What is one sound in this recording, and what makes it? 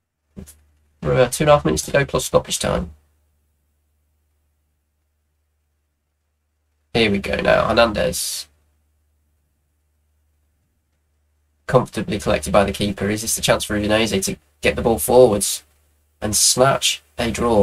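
A man talks with animation close to a microphone, in short bursts.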